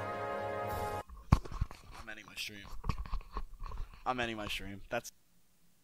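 A young man speaks with animation, close to a microphone.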